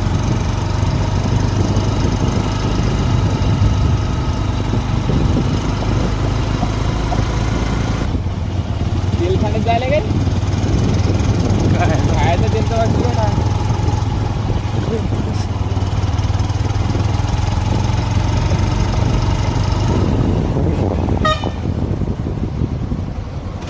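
Wind buffets the microphone on a moving motorcycle.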